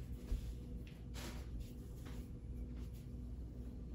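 An oven door opens with a clunk.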